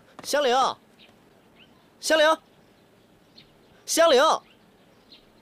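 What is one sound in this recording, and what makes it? A young man calls out loudly three times.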